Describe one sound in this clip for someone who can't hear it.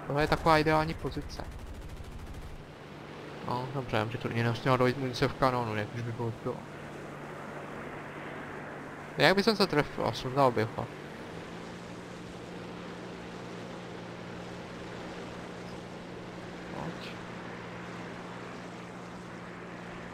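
Aircraft propeller engines drone steadily.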